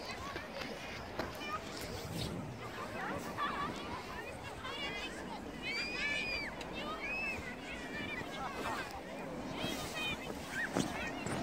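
Children shout and squeal with excitement in the distance outdoors.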